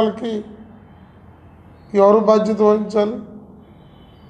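A middle-aged man speaks firmly into a microphone.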